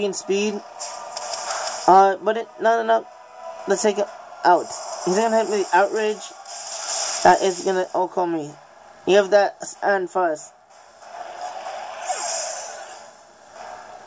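Battle sound effects whoosh and crash.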